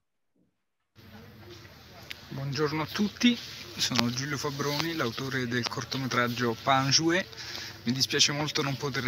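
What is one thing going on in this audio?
A young man talks with animation close to a phone microphone, outdoors.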